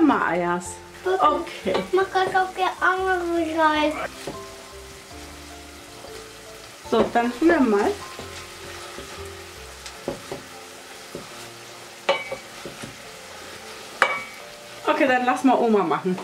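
Meat sizzles in a hot pan.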